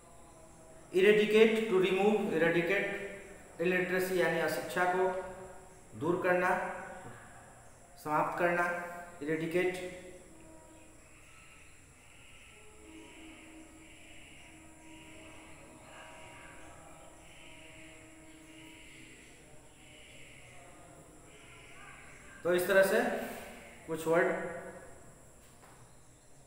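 A man speaks calmly and clearly close to a microphone, with pauses.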